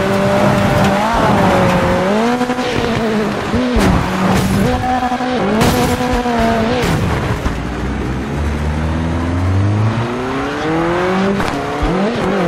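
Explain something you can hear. Tyres skid and scrape on loose dirt.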